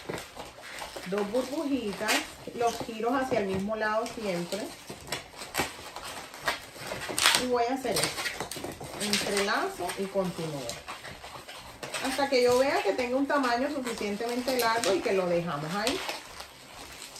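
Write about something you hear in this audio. A woman talks calmly and clearly, close by.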